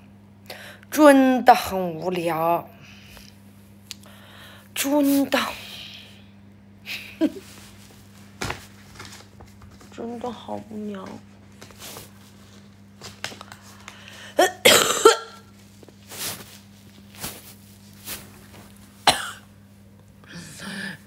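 A young woman talks close to a phone microphone, in short bursts.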